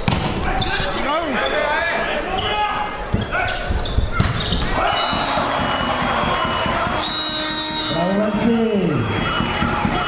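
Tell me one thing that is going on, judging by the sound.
Sneakers squeak sharply.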